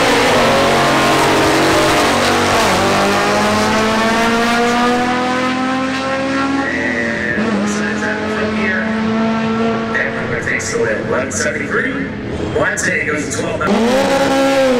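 Race car engines roar at full throttle as the cars speed away.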